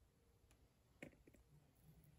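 A plastic toy figure is set down on a table with a light tap.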